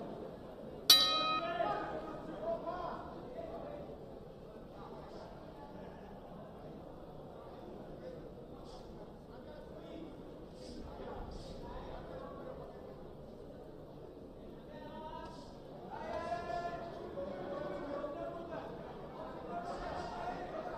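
Spectators murmur and call out in the background.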